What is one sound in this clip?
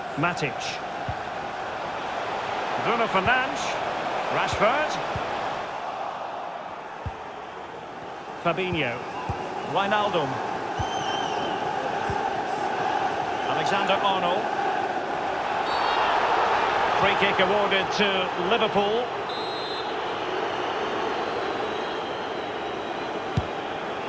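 A stadium crowd roars and cheers steadily, swelling at times.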